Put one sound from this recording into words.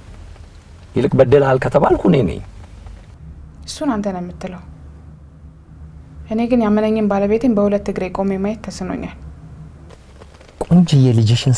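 A man speaks on a phone, close by.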